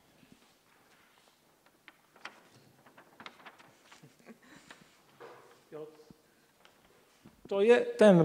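Large paper rustles and crinkles as it is unfolded.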